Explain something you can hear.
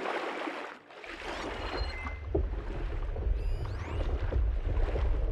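Water gurgles and swirls underwater.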